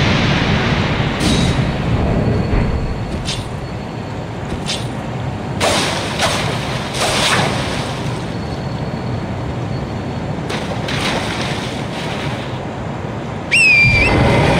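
A horse splashes through shallow water.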